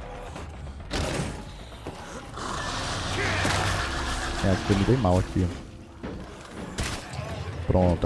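Heavy blows strike with dull, wet thuds.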